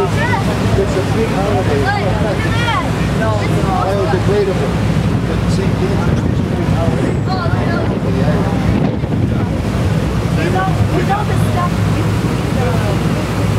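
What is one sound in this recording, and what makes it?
Women talk and chatter nearby.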